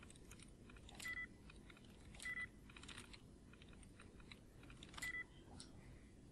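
Short electronic beeps sound from a computer terminal.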